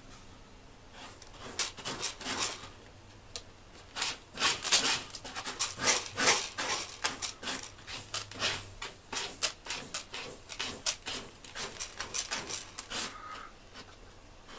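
A cat scratches and digs in crunchy litter.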